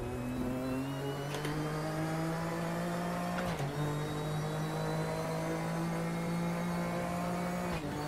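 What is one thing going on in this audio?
A racing car engine drones loudly and steadily.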